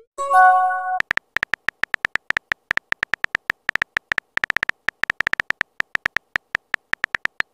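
Typing clicks tap quickly and unevenly.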